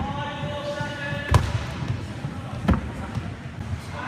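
A man lands with a thud on a wooden box.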